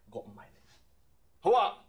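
A man speaks quietly and menacingly up close.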